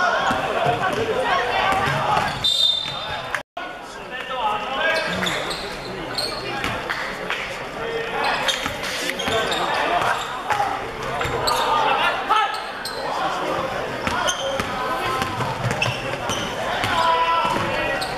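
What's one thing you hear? Basketball shoes squeak sharply on a hard floor.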